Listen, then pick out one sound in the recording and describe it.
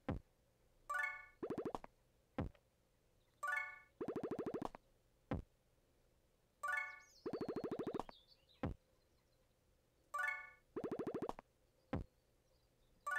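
A low electronic thump sounds between the chimes.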